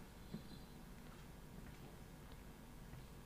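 Footsteps tap on a hard floor in a quiet hall.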